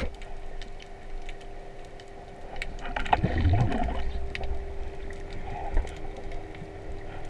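Faint clicks and crackles sound all around underwater.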